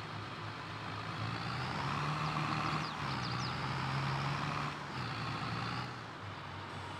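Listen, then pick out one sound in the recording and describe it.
A hydraulic arm whirs as it lifts and lowers.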